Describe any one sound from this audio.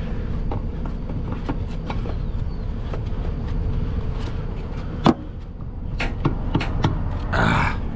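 Metal tools scrape and clank against a heavy metal lid.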